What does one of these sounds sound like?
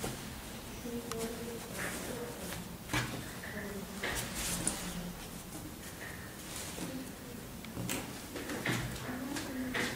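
Fabric rustles and swishes as hands handle it.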